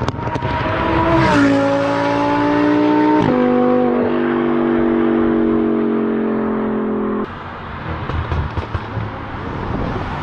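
Wind and road noise rush past a fast-moving car.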